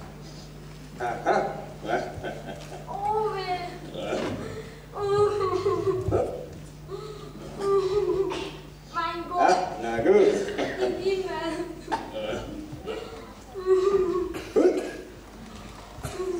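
A puppeteer speaks in a high, animated character voice.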